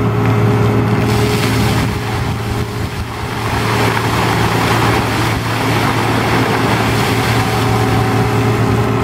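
A bucketful of water pours down and splashes onto a man and the pavement.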